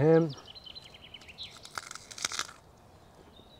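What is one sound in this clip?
A man bites into something crunchy.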